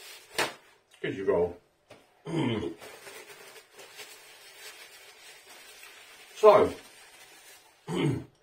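A middle-aged man speaks close to a microphone in short bursts.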